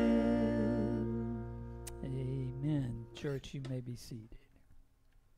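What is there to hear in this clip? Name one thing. A band plays a song on guitars, bass and drums, then comes to an end.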